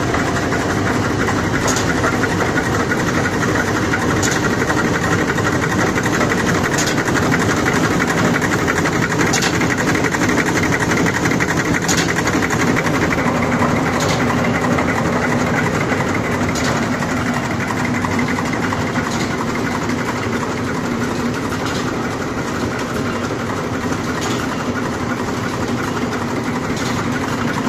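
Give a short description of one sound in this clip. A bottling machine hums and rattles loudly and steadily.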